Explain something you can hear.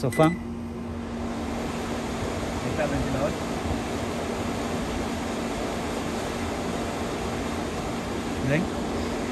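A microwave oven hums steadily as it runs.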